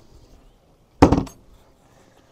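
A hatch lid thuds shut.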